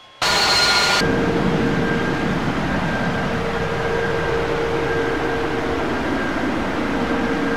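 Jet engines hum steadily inside an airliner cockpit.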